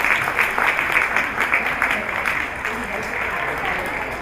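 An audience applauds and cheers in a room.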